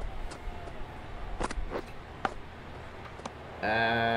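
A cricket bat knocks against a ball.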